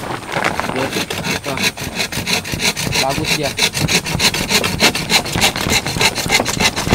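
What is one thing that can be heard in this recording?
A hand saw rasps back and forth through wood in quick strokes.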